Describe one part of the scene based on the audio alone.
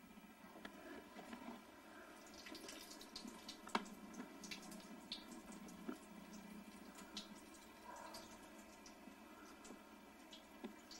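A thin stream of water trickles from a faucet.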